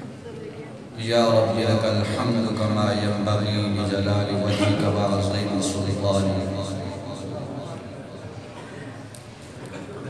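A man chants loudly into a microphone over loudspeakers.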